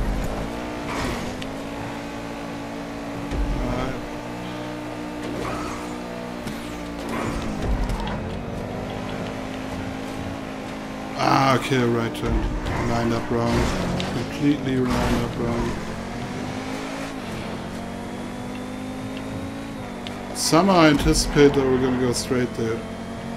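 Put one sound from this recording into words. A racing car engine roars steadily and shifts gears.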